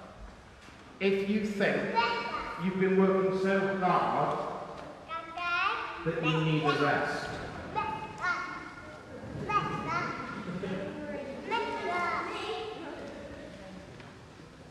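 A man sings in a strong voice that echoes around him.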